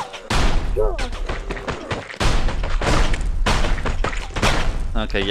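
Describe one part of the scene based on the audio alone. Gunshots fire in loud bursts with a ringing echo.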